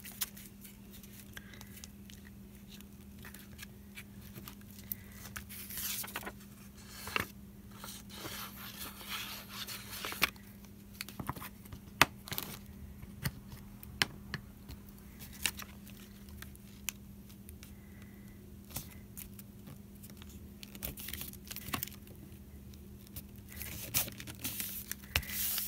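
Hands rub and press down on paper.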